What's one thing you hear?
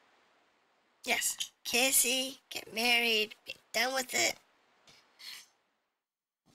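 A young woman speaks with animation into a microphone, close by.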